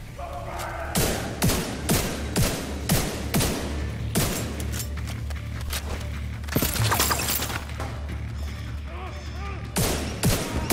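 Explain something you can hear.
Gunshots ring out in sharp, repeated bursts.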